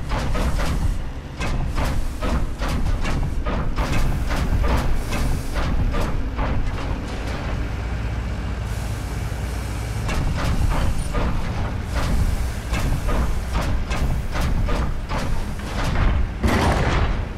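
Heavy mechanical footsteps clank on metal grating at a steady pace.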